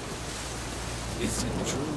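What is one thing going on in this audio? A campfire crackles nearby.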